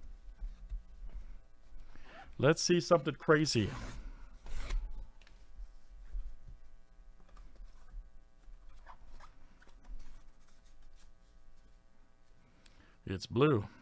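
Paper rustles and crinkles as an envelope is handled and opened.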